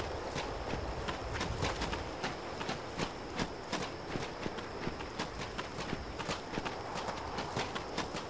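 Footsteps crunch quickly over gravel and snow.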